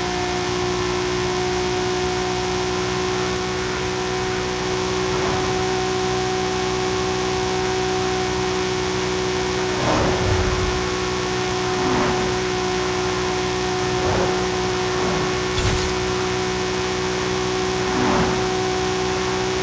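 Wind and tyres roar on the road at speed.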